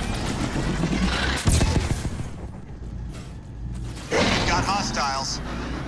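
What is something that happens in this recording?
Weapons fire in rapid bursts during a battle.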